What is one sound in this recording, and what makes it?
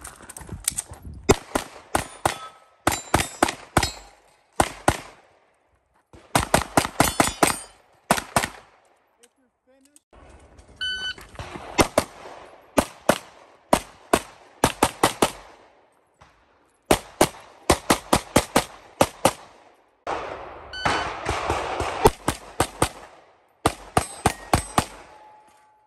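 A handgun fires rapid shots outdoors, each echoing briefly.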